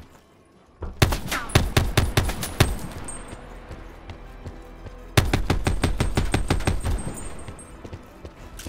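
A machine gun fires loud rapid bursts in an echoing hall.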